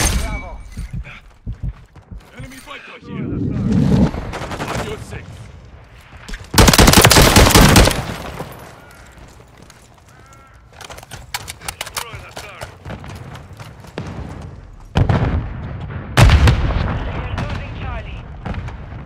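Footsteps crunch quickly over dirt and wooden boards.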